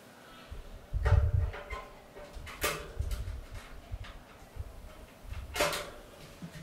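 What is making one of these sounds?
Knobs on an amplifier click as they are turned.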